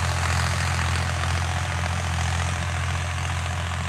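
A plough scrapes and churns through the soil.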